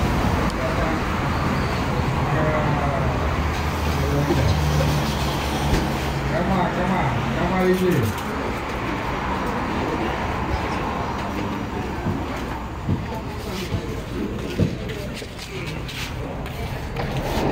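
A crowd of people chat and murmur.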